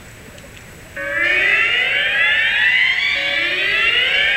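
Rising electronic swooshes from a light show blare over loudspeakers outdoors.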